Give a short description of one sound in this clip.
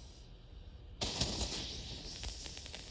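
A firework bursts with a loud bang.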